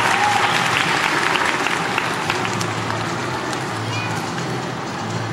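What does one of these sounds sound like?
Coin belts jingle and shimmer as dancers shake their hips.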